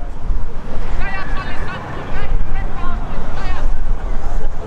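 Young women shout to each other across a field.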